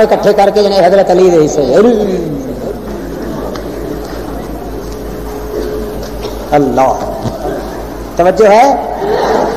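An elderly man preaches loudly and with passion through a microphone.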